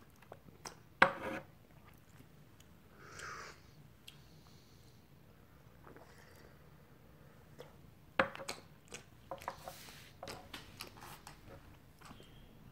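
Porcelain cups clink and clatter on a wooden tray.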